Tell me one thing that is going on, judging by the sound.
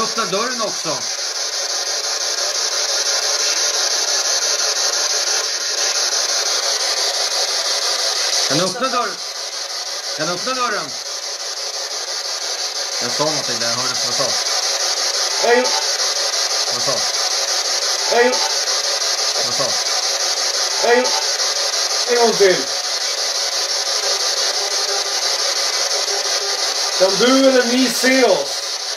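A radio scanner hisses with steady static.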